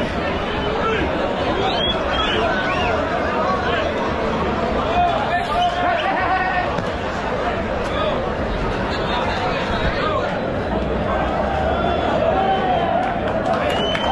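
A large crowd shouts and cheers outdoors.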